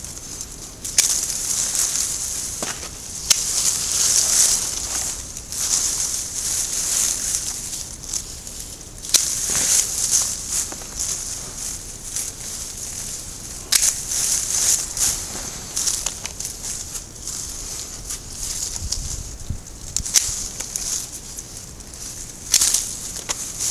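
Pruning shears snip through twigs with sharp clicks.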